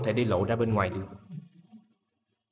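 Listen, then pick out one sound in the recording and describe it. A man speaks briefly nearby in a tense voice.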